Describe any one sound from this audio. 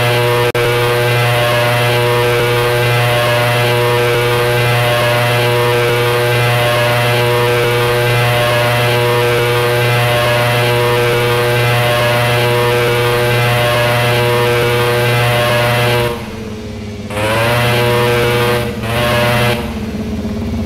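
A motorcycle engine revs hard at a steady high pitch, then drops and revs again.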